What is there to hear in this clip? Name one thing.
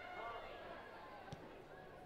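A football is kicked hard with a dull thump.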